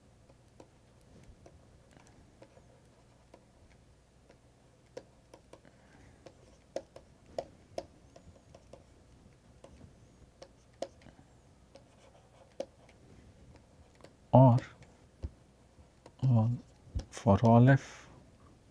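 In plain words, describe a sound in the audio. A stylus taps and scratches on a tablet while writing.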